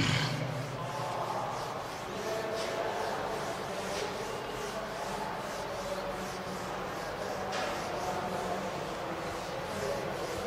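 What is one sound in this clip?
An eraser rubs and squeaks across a whiteboard.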